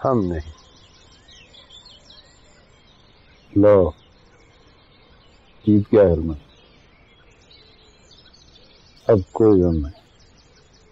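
A man speaks in short, calm phrases close by.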